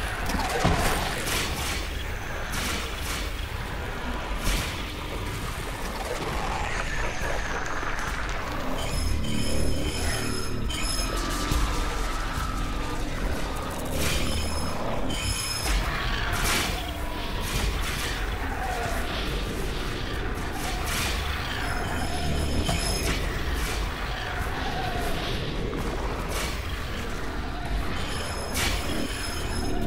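Creatures burst apart with loud, wet splattering sounds, again and again.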